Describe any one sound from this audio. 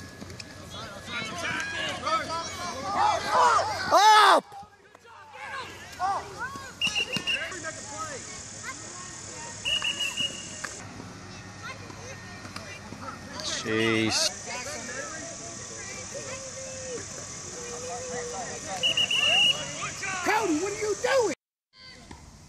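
Adult spectators shout and cheer outdoors.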